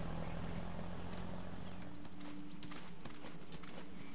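A soldier crawls through rustling dry grass.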